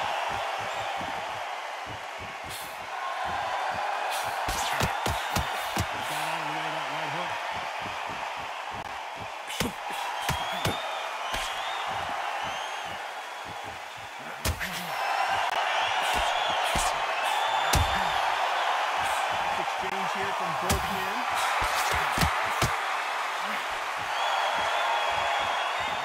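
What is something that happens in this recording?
A crowd cheers and murmurs throughout.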